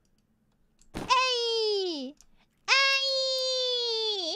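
A young woman squeals loudly in long, high, falling cries.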